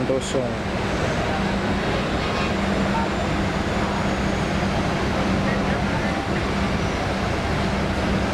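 A diesel coach engine rumbles as the bus pulls slowly past.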